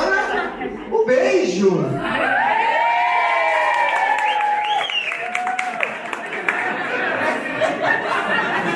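A crowd of people laugh and cheer.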